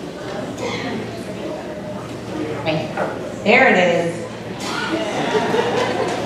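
A crowd of young people chatters and murmurs in a large echoing hall.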